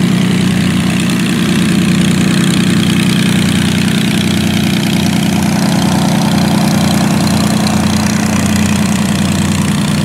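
A propeller plane's engine drones loudly nearby as the plane taxis away.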